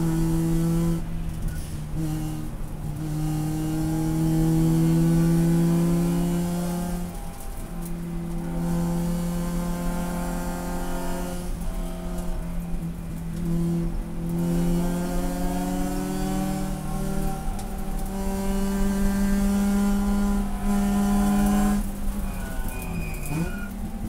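A race car engine roars loudly from inside the cabin, rising and falling as gears shift.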